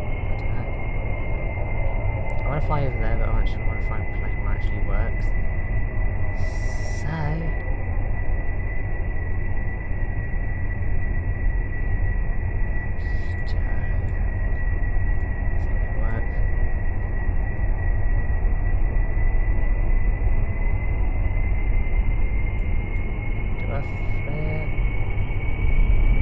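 Propeller engines drone steadily with a low roar.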